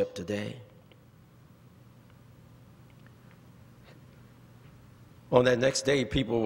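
A man speaks slowly through a microphone in a large echoing hall, pausing between phrases.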